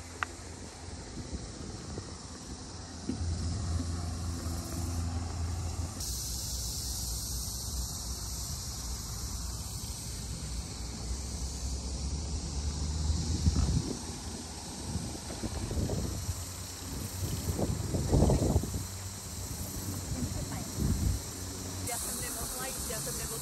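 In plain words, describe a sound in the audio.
Wind blows and gusts outdoors.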